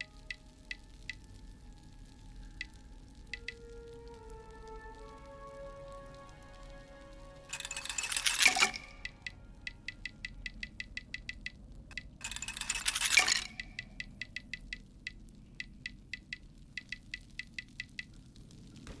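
Soft game menu ticks click quickly as selections change.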